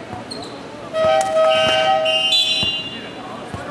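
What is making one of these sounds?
A referee's whistle blows sharply in a large echoing hall.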